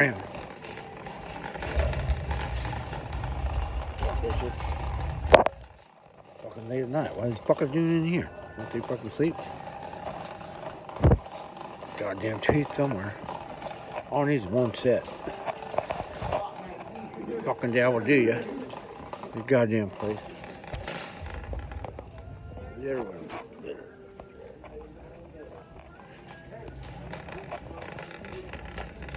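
A shopping cart rattles as it rolls along.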